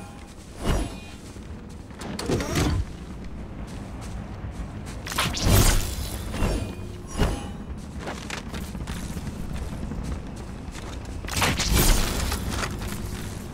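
Weapons clank and click as they are swapped and picked up.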